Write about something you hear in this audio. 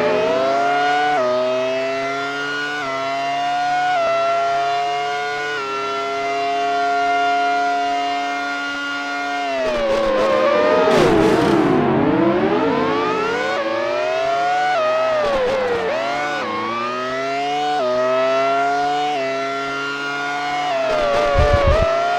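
A synthesized Formula One-style racing car engine revs up and shifts up through the gears.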